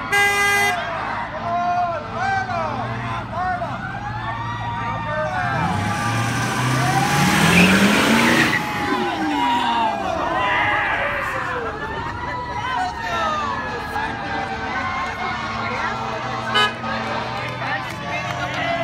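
A crowd of young people cheers and shouts outdoors.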